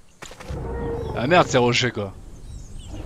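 A dinosaur roars loudly.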